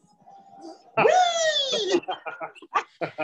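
A young man laughs loudly over an online call.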